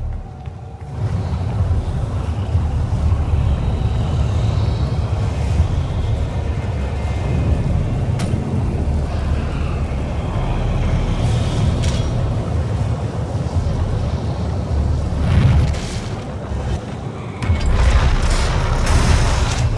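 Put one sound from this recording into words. Molten lava roars with a deep, steady rumble.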